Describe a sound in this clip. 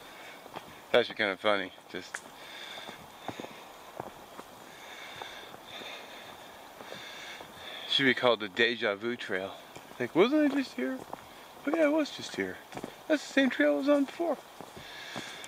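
A man talks close to the microphone, in short bursts.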